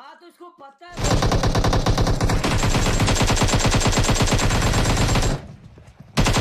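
A rifle fires rapid gunshots.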